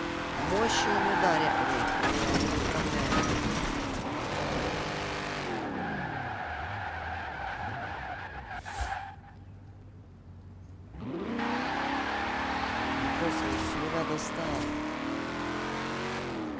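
A car engine roars and revs, dropping in pitch as the car slows and rising again as it speeds up.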